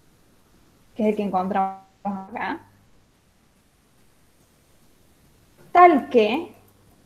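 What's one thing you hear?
A woman speaks calmly over an online call, in short phrases.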